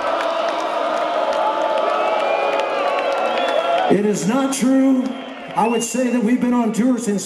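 A rock band plays loudly through large speakers outdoors.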